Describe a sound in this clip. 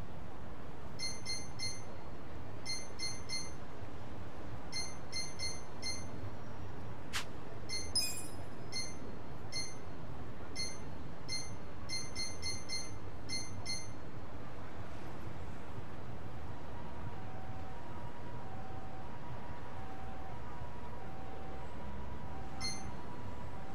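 Short electronic menu blips tick in quick bursts.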